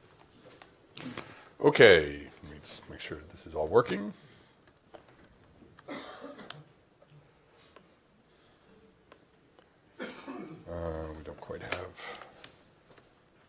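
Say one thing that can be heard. A man speaks in short bursts through a microphone in a slightly echoing room.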